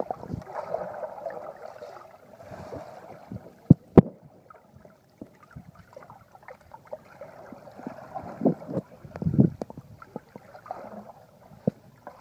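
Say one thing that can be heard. Water gurgles and sloshes around swimmers underwater, heard muffled.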